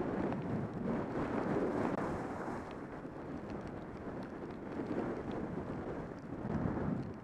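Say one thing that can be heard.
Wind rushes past a close microphone.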